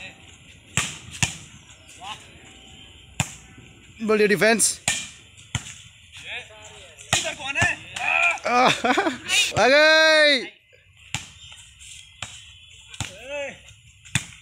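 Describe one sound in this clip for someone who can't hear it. A ball thumps as players hit it.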